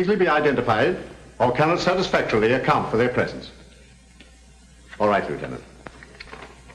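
An older man speaks firmly and gruffly, close by.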